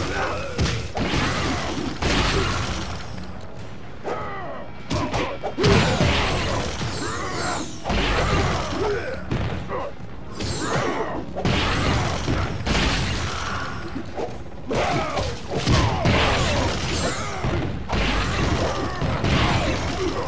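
Ice magic crackles and shatters.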